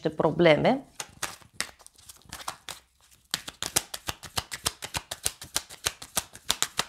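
Cards are shuffled with quick, soft riffling taps.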